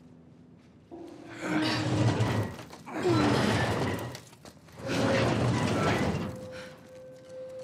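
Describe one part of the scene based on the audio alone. A heavy metal door scrapes loudly as it is pushed.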